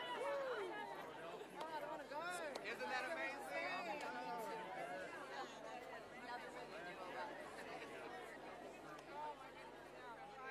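A large crowd chatters outdoors, with many voices overlapping.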